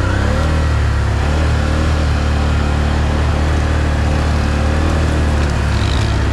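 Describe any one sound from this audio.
An all-terrain vehicle engine drones steadily up close.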